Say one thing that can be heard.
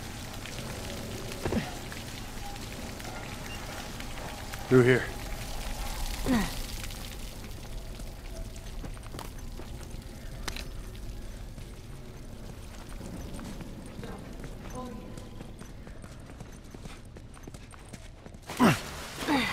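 Footsteps crunch slowly over debris.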